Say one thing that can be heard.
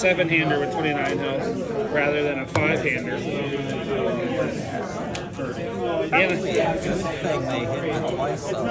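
Cards tap softly onto a table.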